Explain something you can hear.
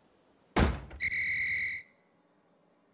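A short, bright electronic chime rings out.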